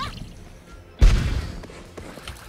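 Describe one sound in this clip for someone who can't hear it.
A loud blast booms.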